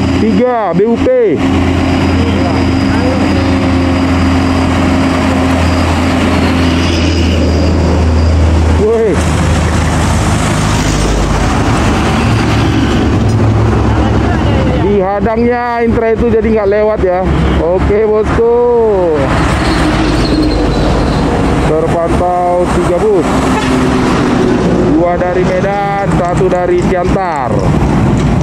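A bus horn plays loud, rising and falling musical notes.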